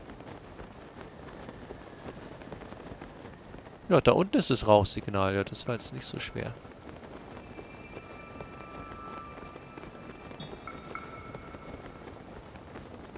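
Wind rushes steadily past a glider.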